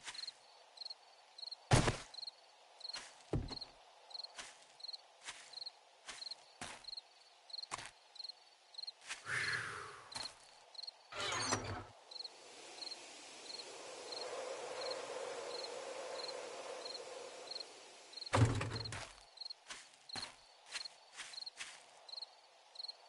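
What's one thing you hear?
Footsteps rustle through grass at an even pace.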